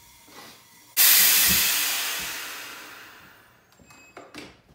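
A soda maker hisses loudly as it fizzes water, then fades.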